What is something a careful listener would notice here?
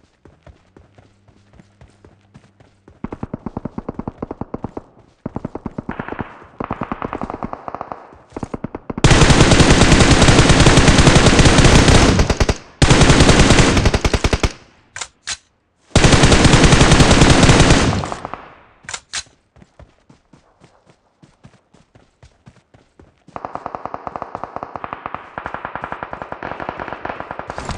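Footsteps crunch quickly over dirt and rock.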